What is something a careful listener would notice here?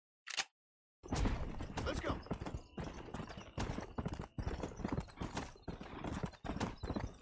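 A horse trots with steady hoofbeats on a dirt path.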